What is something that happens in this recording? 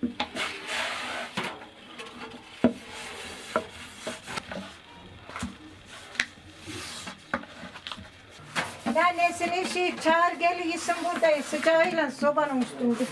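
A wooden rolling pin knocks and rolls on a wooden board.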